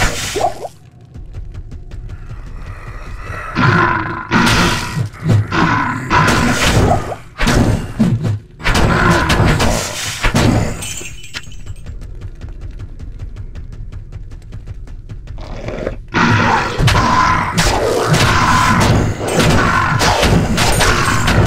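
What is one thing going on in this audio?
Magic spells crackle and burst again and again.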